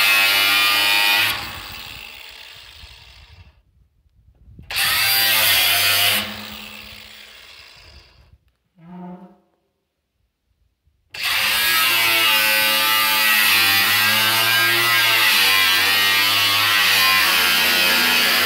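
An angle grinder whines loudly in bursts, winding down between them.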